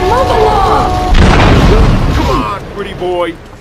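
A car burns with a roaring explosion.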